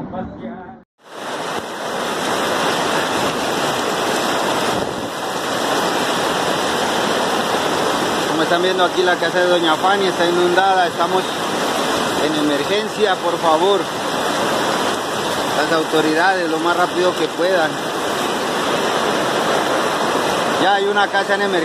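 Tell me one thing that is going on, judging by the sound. Muddy floodwater rushes and roars loudly.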